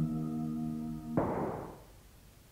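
A gunshot rings out loudly.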